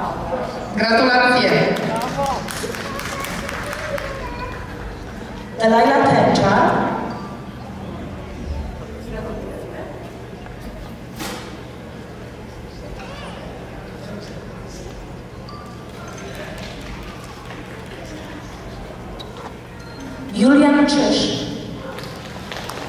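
A woman speaks loudly into a microphone over loudspeakers in an echoing hall.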